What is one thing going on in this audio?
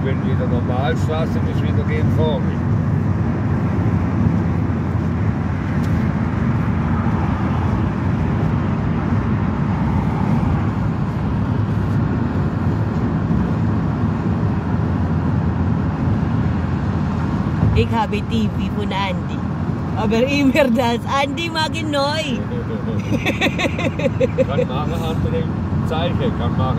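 A car engine hums steadily while driving on a motorway.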